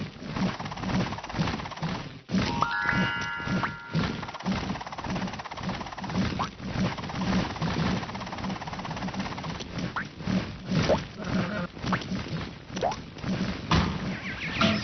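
Cheerful game music plays throughout.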